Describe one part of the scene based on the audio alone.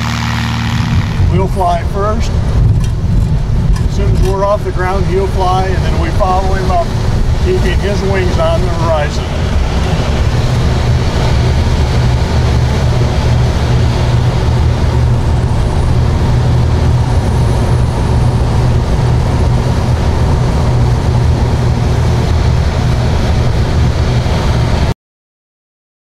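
Wind rushes loudly past, heard from inside a gliding aircraft.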